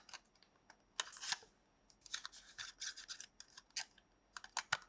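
A cardboard box flap is opened and closed with a soft scraping.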